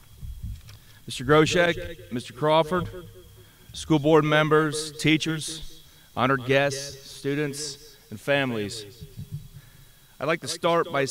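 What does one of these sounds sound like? A man speaks calmly through a loudspeaker outdoors.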